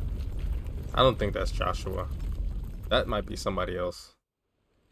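A man speaks slowly in a low, deep voice close by.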